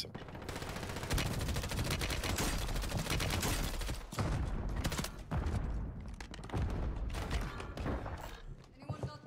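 Gunfire from a video game bursts in rapid shots.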